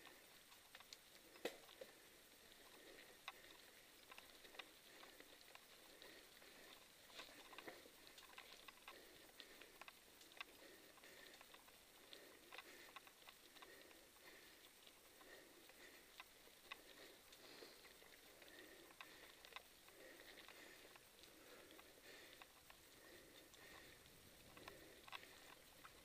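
Footsteps crunch on a gravel path at a steady walking pace.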